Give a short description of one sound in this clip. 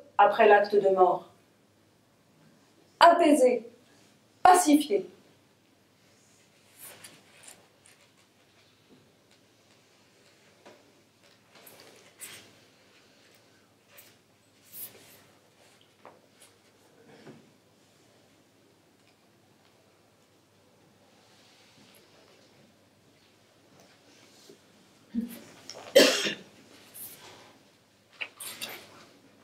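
A woman reads aloud from a book, with long pauses.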